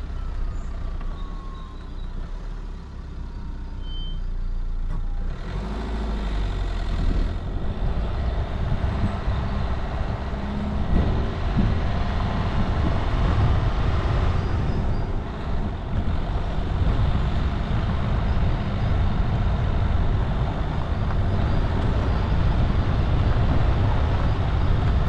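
A vehicle engine rumbles steadily while driving slowly.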